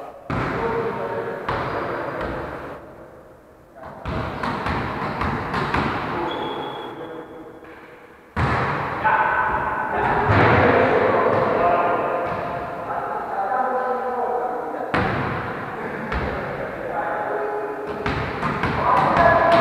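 Men call out to each other during a volleyball game in an echoing gym hall.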